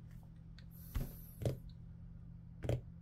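A hand taps on a wooden tabletop.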